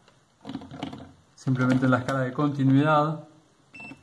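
A meter's dial clicks as it is turned.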